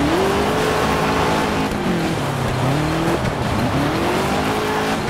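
A rally car engine revs hard, rising and falling as it shifts gears.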